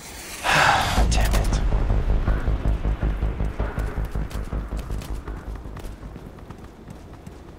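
Heavy footsteps thud on pavement.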